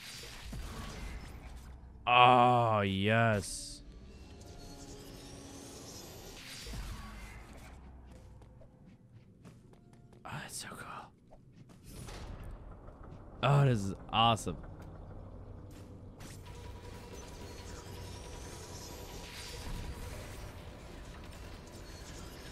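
An energy beam fires with a buzzing hum.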